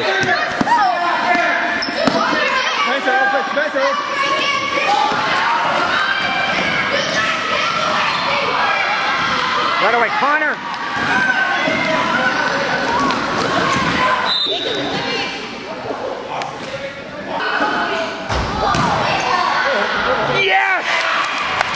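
A crowd of children and adults shouts and cheers in a large echoing gym.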